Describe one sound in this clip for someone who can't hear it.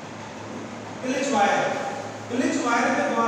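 A man speaks calmly into a clip-on microphone.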